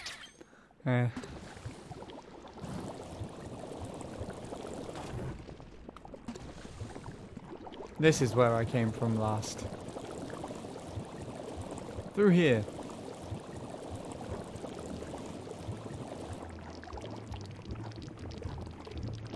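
A bubbling, sizzling rush sounds as a game character swims through hot goo.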